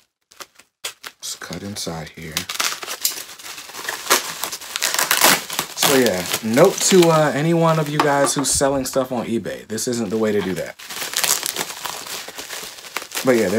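Paper and plastic packaging crinkle and rustle as it is opened.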